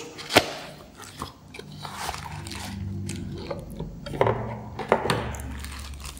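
A cardboard box rustles and scrapes as it is opened.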